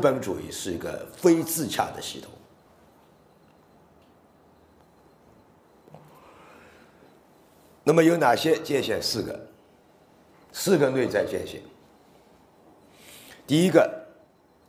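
A middle-aged man speaks with animation into a microphone, with pauses between phrases.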